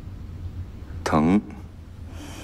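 A young woman speaks in short, strained phrases.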